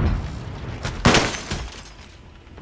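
An explosion bursts loudly close by.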